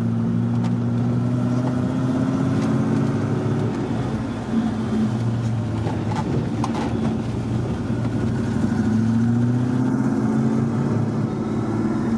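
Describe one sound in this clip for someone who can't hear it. A diesel engine drones steadily, its pitch dipping and rising again.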